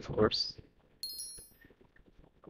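A short, high electronic chime rings once.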